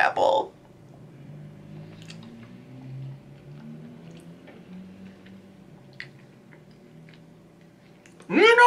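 A young man hums while chewing.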